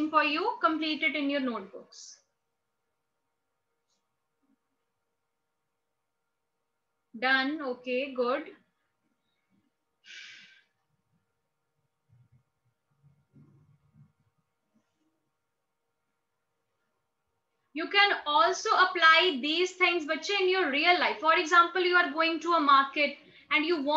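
A young woman speaks calmly and clearly close to the microphone, with pauses.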